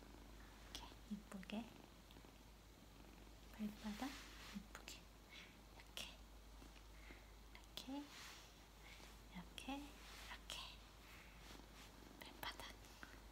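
Fabric rustles as a cat is handled.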